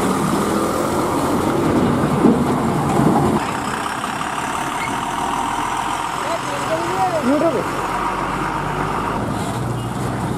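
Large truck tyres crunch over a wet dirt road.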